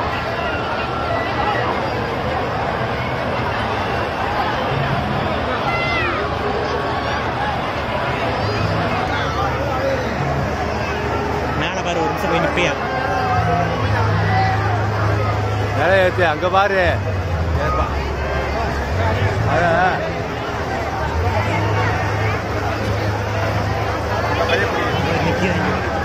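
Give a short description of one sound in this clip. A large outdoor crowd chatters loudly all around.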